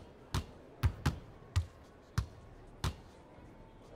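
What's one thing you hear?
A basketball bounces on a hardwood floor in quick dribbles.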